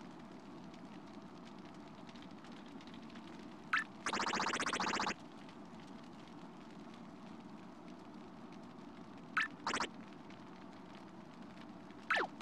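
Soft game music plays steadily in the background.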